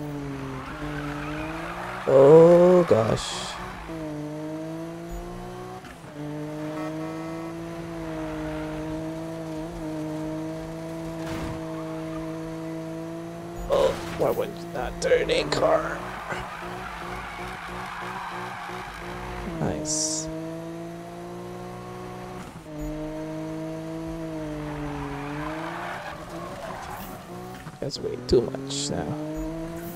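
A game car engine roars and revs steadily.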